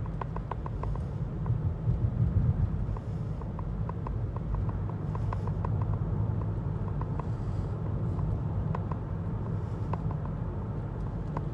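Tyres roll on the road beneath the car.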